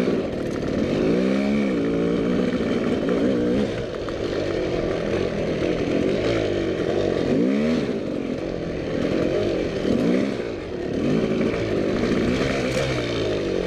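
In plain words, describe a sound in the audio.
Tyres crunch over rocks and gravel.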